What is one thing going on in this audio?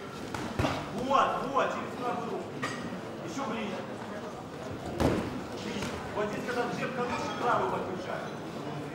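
Men shout excitedly from the crowd.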